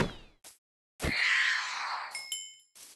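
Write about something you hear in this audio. A small creature gives a short, fading death cry.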